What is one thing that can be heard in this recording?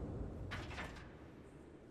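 A metal gate creaks open.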